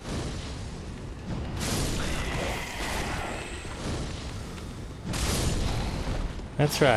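A fireball bursts with a roaring whoosh.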